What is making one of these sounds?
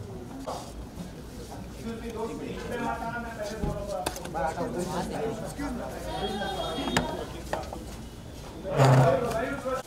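A crowd murmurs and chatters in a bustling group.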